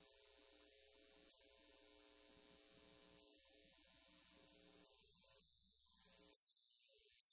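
A young woman sings softly into a microphone.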